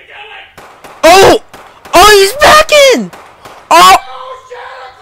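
A young man shouts loudly in an exaggerated voice.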